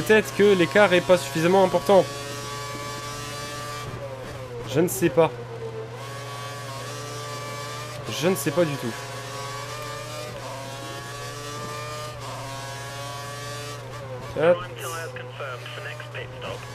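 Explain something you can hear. A racing car engine revs up and down sharply as it brakes for corners.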